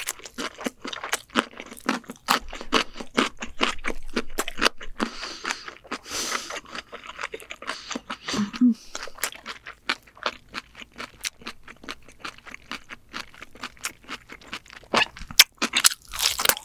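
A woman chews crispy fried ramen pizza close to a microphone, with crunching bites.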